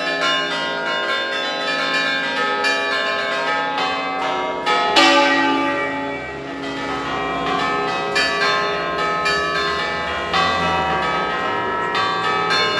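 Church bells ring out loudly in rapid, overlapping peals.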